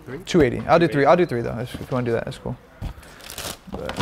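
A cardboard shoebox lid opens.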